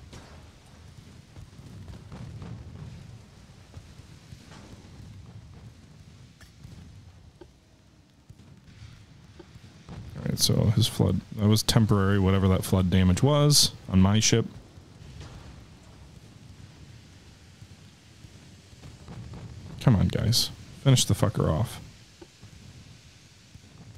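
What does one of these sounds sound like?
Waves wash softly across open sea.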